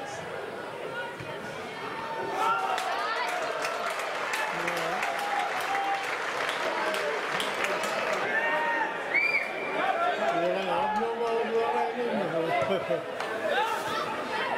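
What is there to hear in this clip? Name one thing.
A large crowd cheers and shouts outdoors, swelling loudly.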